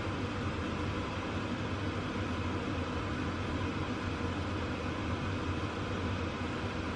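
A pot of stew bubbles and simmers.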